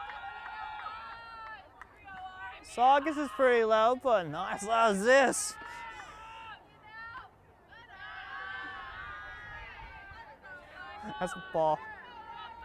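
Young girls call out and cheer throughout, somewhat farther off.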